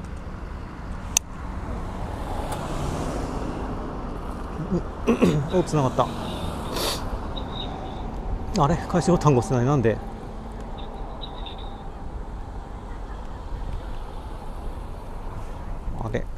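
Bicycle tyres roll over pavement.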